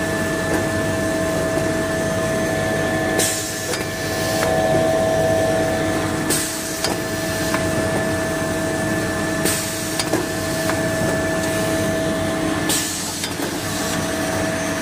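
Factory machinery hums and whirs steadily.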